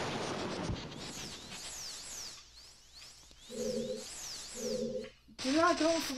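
Shimmering magical whooshes sweep downward again and again in a video game.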